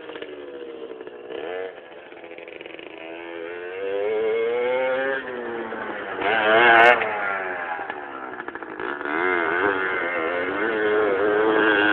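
A small dirt bike engine revs and whines up and down.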